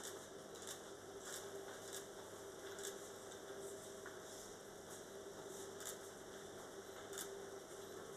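Syrup pours from a ladle and sizzles softly on hot pastry.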